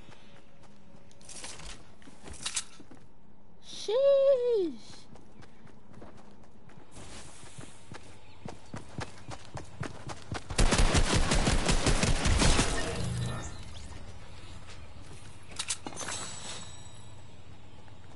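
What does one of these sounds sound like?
Light footsteps patter quickly on the ground.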